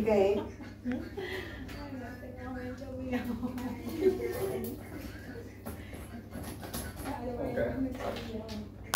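Several people chat.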